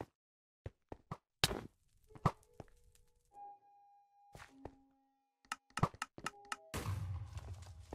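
A bow creaks as it is drawn and released.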